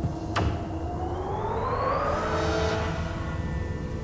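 A vehicle rushes through a tunnel with a rising whoosh.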